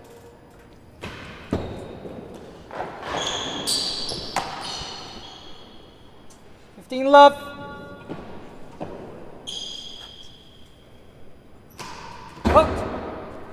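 A racket strikes a ball with a sharp crack in an echoing hall.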